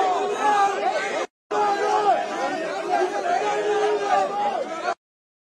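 A large crowd of men and women chatters and shouts loudly close by.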